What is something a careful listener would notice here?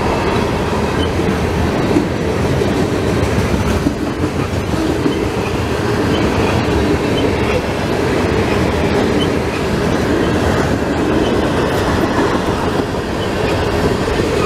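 A long freight train rumbles and rattles steadily past close by.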